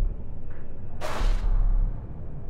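A short whoosh sounds.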